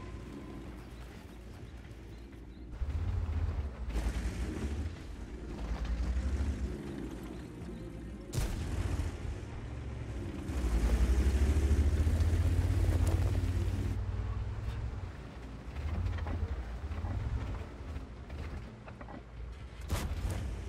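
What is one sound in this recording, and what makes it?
A tank engine rumbles low, swelling and easing.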